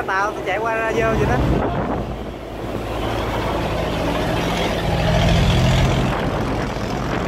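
A boat engine rumbles close by.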